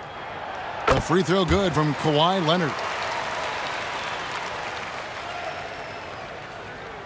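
A large crowd cheers in a big arena.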